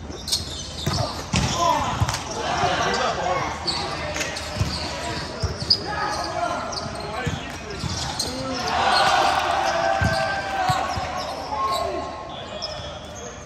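Young men call out and talk in a large echoing hall.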